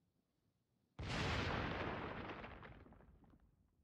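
Naval guns fire with a deep, rumbling boom.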